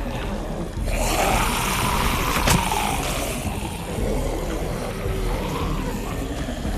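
Zombies groan and snarl as they shuffle closer.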